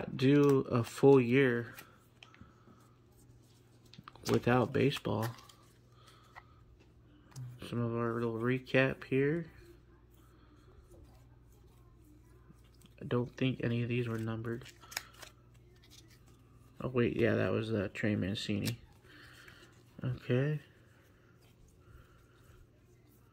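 Trading cards rustle and slide against each other as hands sort through them.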